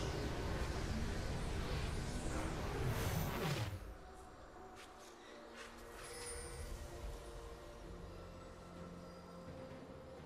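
Sounds of fighting play in a video game, with whooshing spells and sharp hits.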